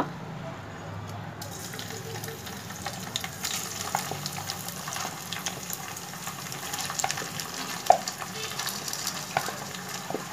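A spatula scrapes food from a plastic bowl into a pan.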